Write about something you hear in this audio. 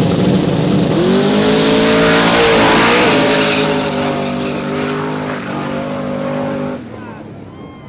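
A race car engine roars as the car launches and speeds away, fading into the distance.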